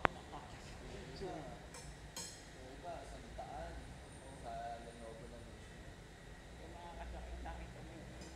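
A young man laughs softly nearby.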